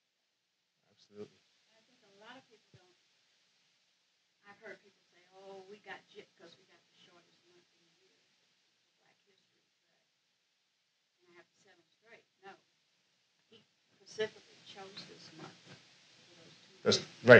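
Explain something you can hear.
A man speaks from a distance, with long pauses.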